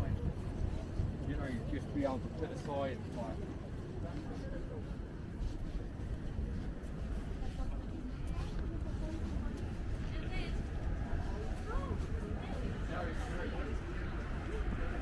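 Men and women talk nearby as they walk outdoors.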